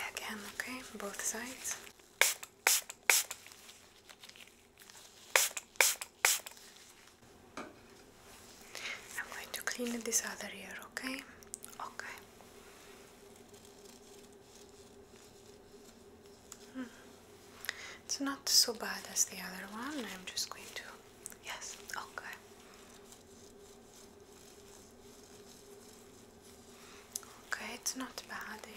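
Rubber gloves crinkle and rustle.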